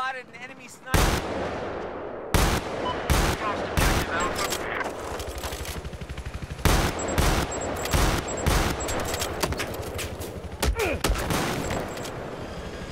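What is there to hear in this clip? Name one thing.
Gunshots crack loudly again and again.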